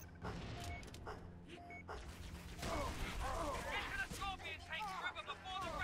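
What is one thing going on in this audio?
Gunshots and blasts ring out in a battle.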